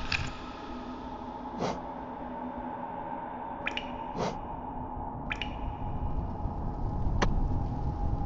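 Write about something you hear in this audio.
Soft clicks tick in quick succession.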